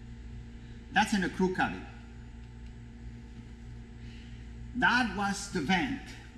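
A middle-aged man speaks calmly nearby in a slightly echoing room.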